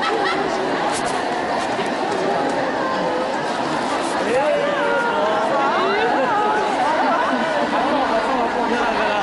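A large crowd of marchers chatters outdoors.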